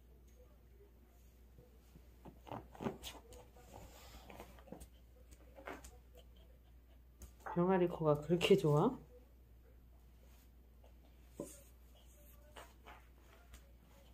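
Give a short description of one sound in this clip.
A dog's claws click on a hard floor.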